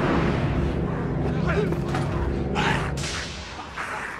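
A crowd of people screams in panic.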